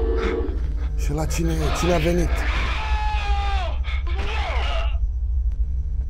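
A young man exclaims with animation, close to a microphone.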